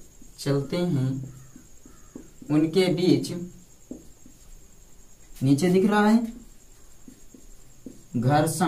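A young man speaks in short bursts close to the microphone, explaining calmly.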